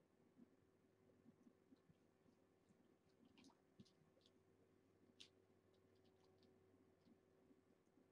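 Small paws patter and scratch on a carpeted cat tree.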